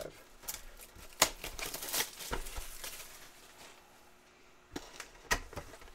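Cardboard packs rustle and tear.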